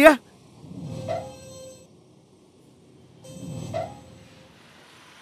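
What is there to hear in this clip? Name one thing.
A metal gate creaks as it swings open.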